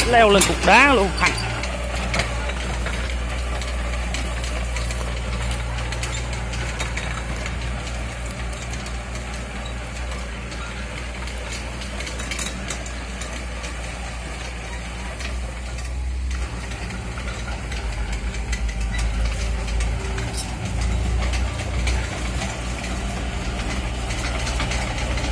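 A small excavator's diesel engine rumbles steadily close by.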